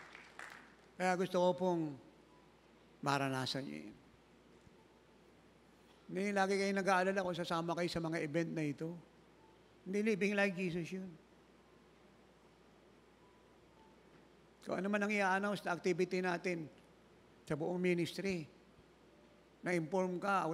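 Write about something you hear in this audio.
A man speaks slowly and with emphasis through a microphone in a large echoing hall.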